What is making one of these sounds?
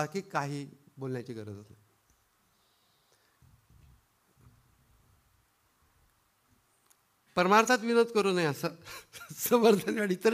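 A middle-aged man speaks calmly into a microphone, with a long pause.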